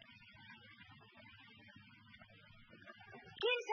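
A lid shuts on a wooden box.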